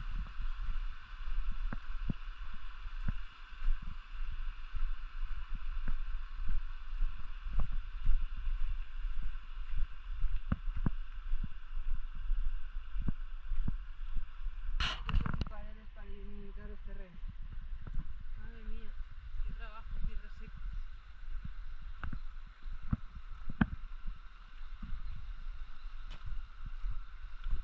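A stream trickles over rocks nearby.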